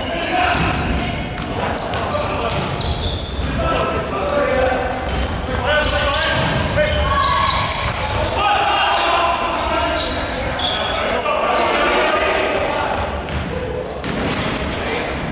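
Basketball shoes squeak sharply on a wooden court in a large echoing hall.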